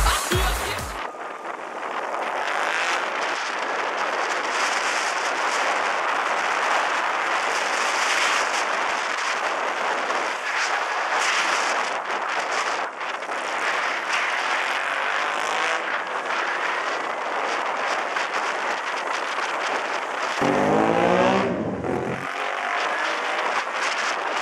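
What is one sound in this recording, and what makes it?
A single-cylinder motorcycle engine hums while riding along a street.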